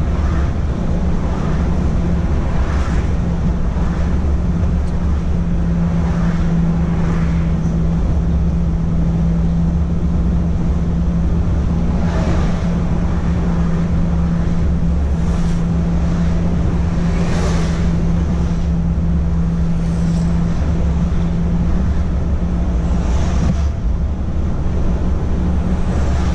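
Oncoming vehicles whoosh past one after another.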